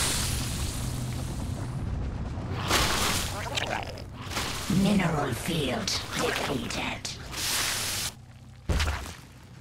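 Laser beams crackle and hum in a battle.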